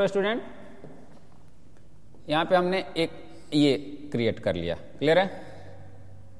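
A man speaks clearly and with emphasis, close to a microphone.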